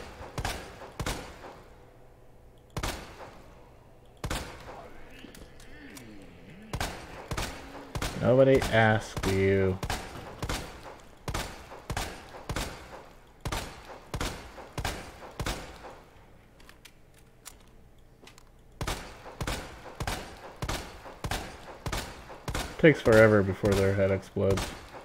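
A handgun fires shot after shot, loud and sharp.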